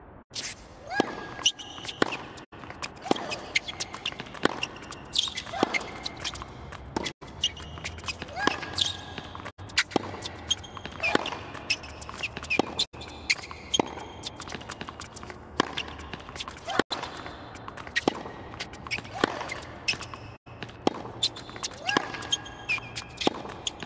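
A tennis ball is struck back and forth with sharp racket hits.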